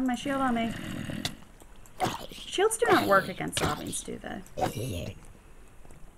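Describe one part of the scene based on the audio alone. A sword swishes and strikes a zombie.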